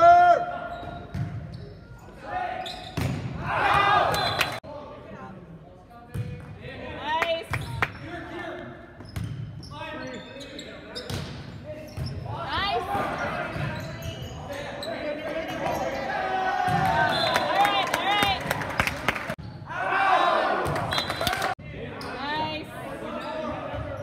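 A volleyball smacks off hands and arms in quick bursts.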